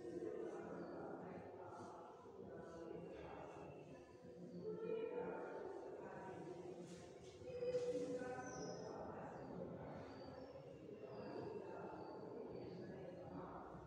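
A marker squeaks and scratches on a whiteboard.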